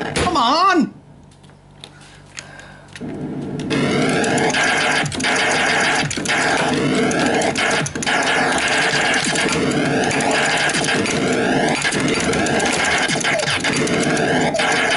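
An arcade game plays loud electronic zaps, bleeps and explosions.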